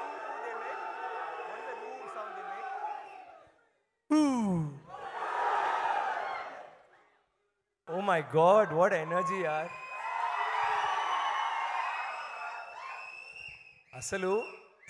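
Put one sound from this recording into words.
A large crowd cheers and screams in a big echoing hall.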